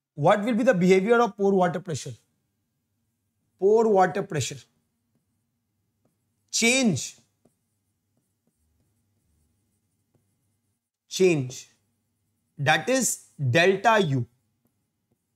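A man speaks calmly in short bursts, close to a microphone, with pauses between phrases.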